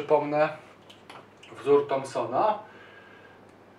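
A man speaks calmly, as if explaining, into a microphone.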